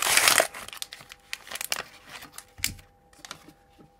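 Plastic wrapping crinkles as it is peeled away.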